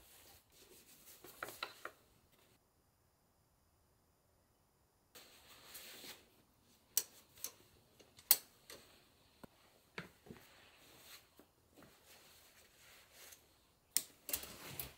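Cloth towels rustle as they are handled.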